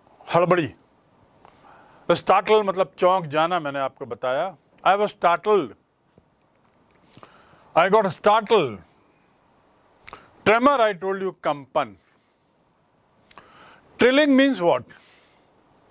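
An older man speaks calmly and clearly into a close microphone, in short phrases with pauses.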